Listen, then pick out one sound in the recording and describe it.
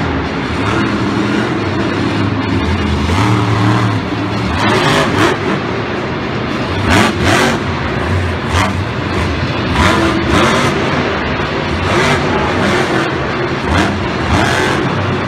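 A monster truck engine roars loudly and revs in bursts.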